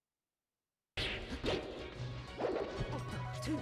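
Arcade-style fighting game sound effects and music play with quick hits.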